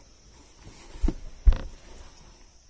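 Plastic clicks and taps faintly.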